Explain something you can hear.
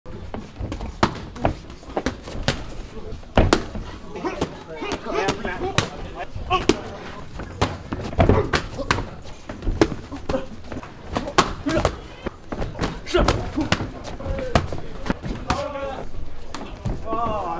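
Kicks and punches smack loudly against pads and gloves, again and again.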